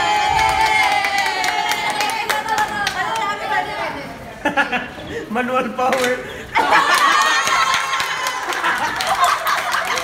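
Young women laugh and chatter excitedly close by.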